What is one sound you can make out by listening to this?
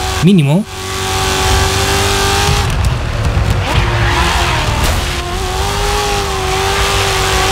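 A racing car engine roars at high revs, its pitch dropping and rising as it brakes and accelerates.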